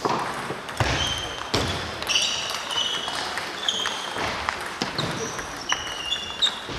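Ping-pong balls click against paddles and tables in a large echoing hall.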